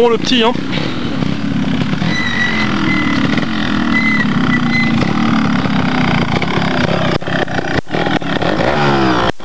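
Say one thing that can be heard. A trials motorcycle engine runs at low speed, with sharp throttle blips.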